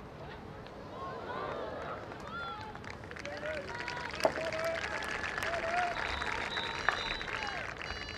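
A crowd of spectators cheers outdoors.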